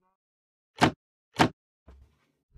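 A wooden trapdoor clacks open and shut.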